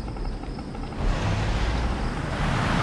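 Tank engines rumble low as vehicles move.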